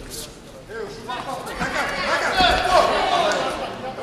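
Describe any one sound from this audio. A judoka is thrown and lands with a thud onto a judo mat.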